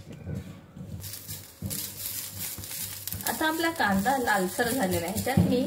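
Onions sizzle in hot oil in a pan.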